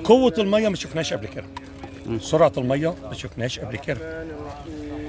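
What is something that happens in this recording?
An older man speaks with animation close to a microphone, outdoors.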